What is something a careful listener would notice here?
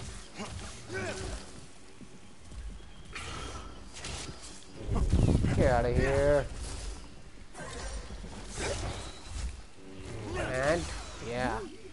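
A blade clashes with sparking metallic strikes.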